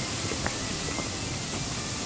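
Footsteps tap on stone steps outdoors.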